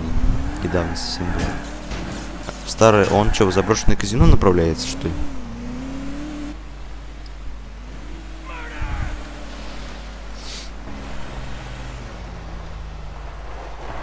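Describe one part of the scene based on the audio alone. A car engine drones and revs, rising and falling.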